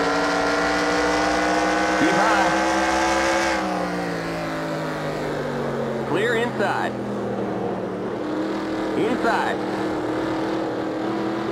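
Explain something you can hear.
A race car engine roars at high speed, its pitch dropping as it slows for a turn.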